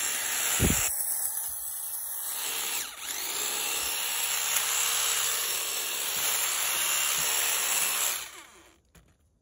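An electric hedge trimmer buzzes loudly while it cuts through leafy branches.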